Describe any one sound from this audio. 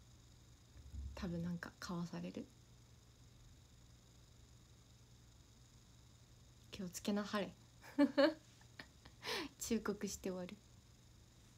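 A young woman speaks softly and playfully close to a microphone.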